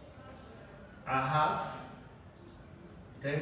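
A man speaks in a loud, clear voice.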